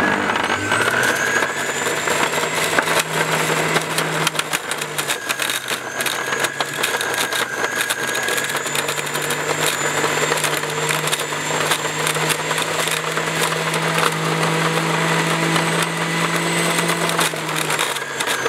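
A juicer grinds chunks of fruit with a rough crunching noise.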